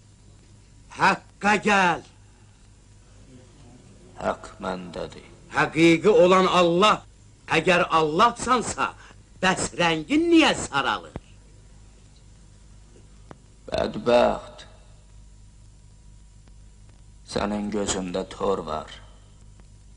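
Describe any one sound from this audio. A man speaks in a strained, pained voice, close by.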